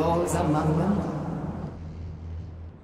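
A woman speaks calmly and coldly.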